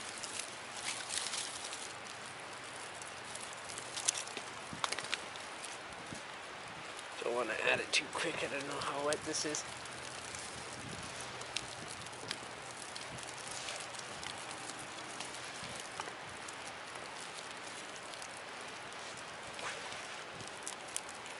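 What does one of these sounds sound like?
Dry twigs rustle and snap as they are handled.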